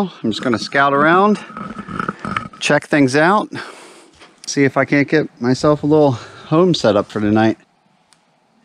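A young man talks calmly and close to the microphone.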